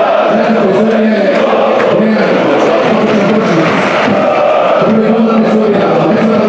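A big crowd roars and cheers in an open stadium.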